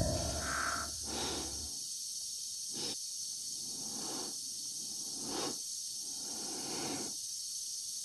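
A man breathes heavily inside a helmet.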